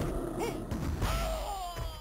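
A fireball bursts with a whooshing blast.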